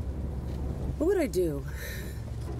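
A woman speaks briefly, close by.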